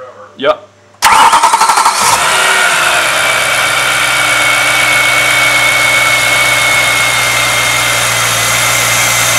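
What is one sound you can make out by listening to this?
A car engine starts and idles loudly with a throaty intake roar.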